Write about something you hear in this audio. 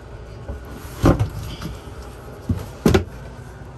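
A cabinet door clicks and knocks as a hand pulls it.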